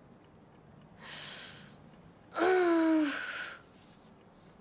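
A young woman sobs in distress.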